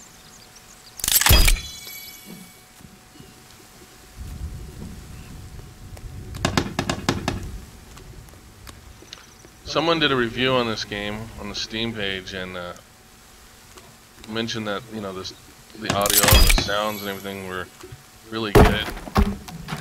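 An axe chops into wood with sharp, heavy thuds.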